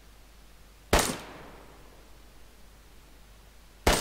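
A rifle fires loud single shots that echo away outdoors.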